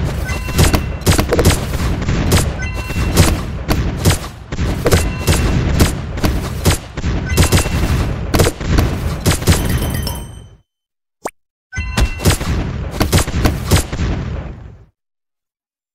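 Rapid gunfire and explosions crackle in a game.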